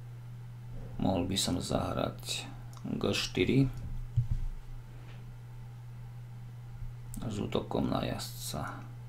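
A man speaks calmly and close to a microphone, in short phrases with pauses.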